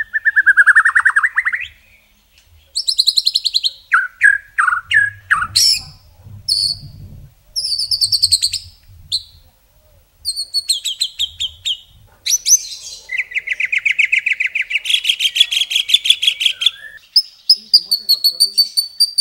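A songbird sings loud, varied phrases of whistles, rapid trills and chirps close by.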